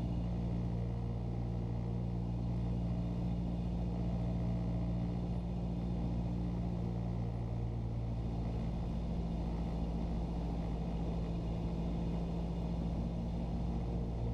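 A small propeller plane's engine drones loudly and steadily from inside the cabin.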